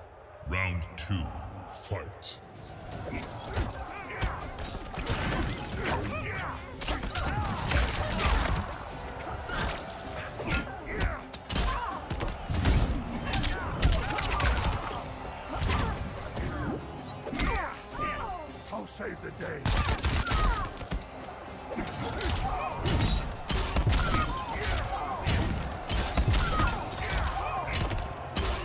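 Punches and kicks land with heavy thuds and smacks.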